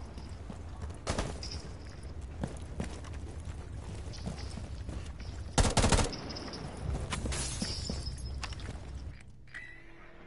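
Gunshots crack in short bursts.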